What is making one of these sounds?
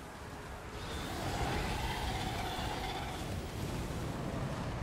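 A magical blast roars and crackles.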